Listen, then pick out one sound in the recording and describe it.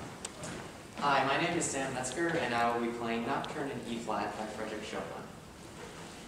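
A young man speaks calmly to an audience.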